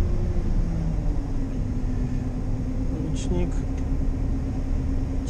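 A combine harvester's engine rumbles steadily.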